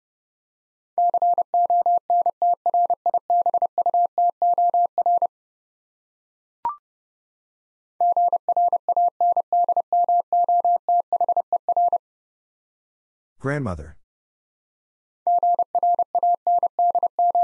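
A Morse code key beeps out quick, even tones.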